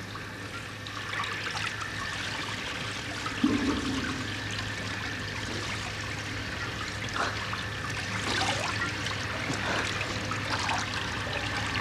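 A man splashes water on his face.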